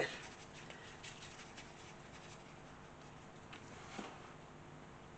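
A paintbrush softly dabs and scrapes on a paper plate.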